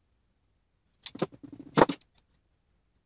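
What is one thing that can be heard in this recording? Metal pieces clink and clatter on a wooden bench.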